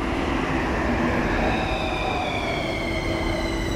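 Train brakes squeal with falling tones as the train slows to a stop.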